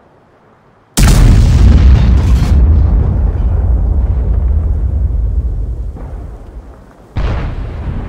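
A tank engine rumbles loudly up close.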